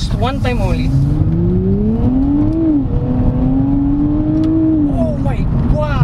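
A car engine revs up, its pitch climbing and then dropping.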